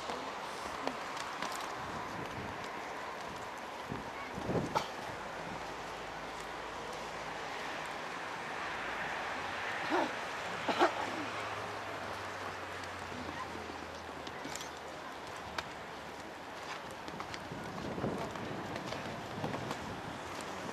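A horse canters on sand, its hooves thudding.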